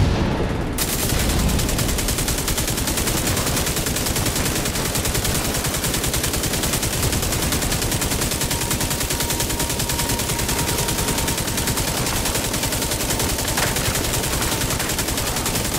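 A mounted gun turret fires rapidly.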